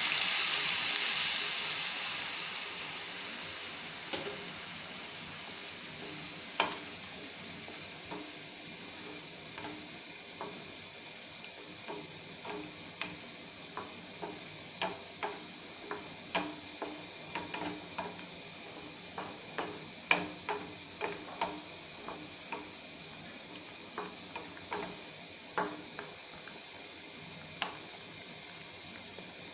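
A thick sauce sizzles and bubbles in a pan, loudly at first and then more quietly.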